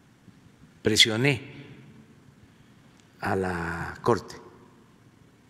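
An elderly man speaks calmly into a microphone in short bursts.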